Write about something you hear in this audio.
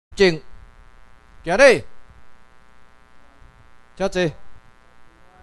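A man loudly calls out short commands in a large room.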